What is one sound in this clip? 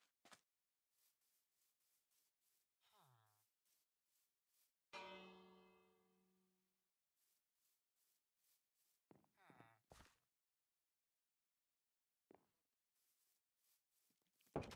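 Footsteps tread steadily on grass and dirt.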